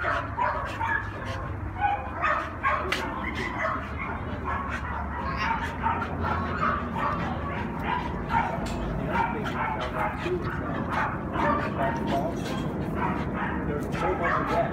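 Two dogs scuffle and play, their paws scrabbling on the ground.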